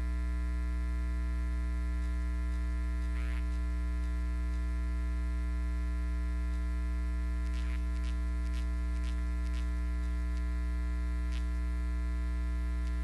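Men and women chat faintly far off in a large room.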